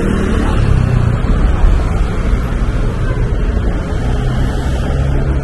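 Traffic hums steadily nearby.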